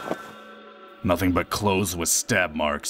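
A man speaks firmly and close up.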